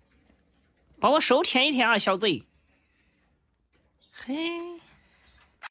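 A woman calls out playfully close by.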